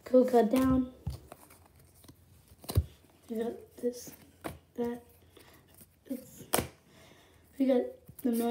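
Stiff playing cards flick and shuffle close by.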